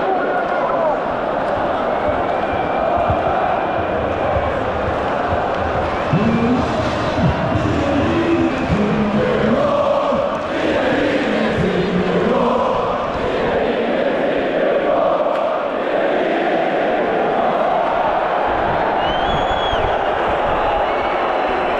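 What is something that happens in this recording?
A large crowd of fans sings and chants loudly in a big echoing stadium.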